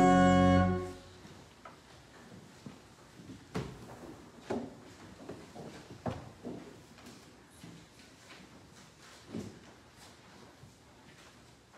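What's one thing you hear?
A man speaks quietly in a large echoing room.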